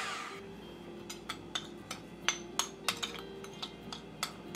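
A spoon scrapes and clinks against a bowl.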